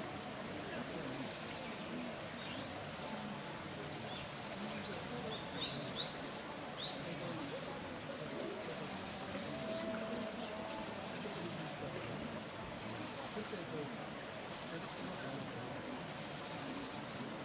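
A shallow stream babbles steadily over rocks.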